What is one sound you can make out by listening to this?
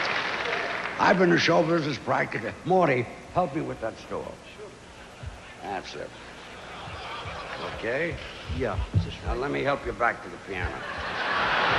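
An elderly man speaks calmly through a microphone in a large hall.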